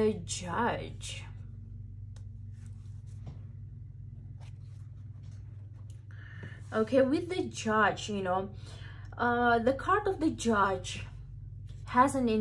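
A card slides softly across a tabletop.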